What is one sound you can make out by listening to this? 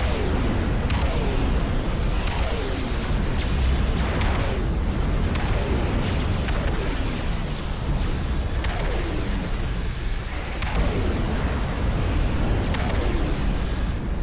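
Weapons fire and small explosions crackle in a distant battle.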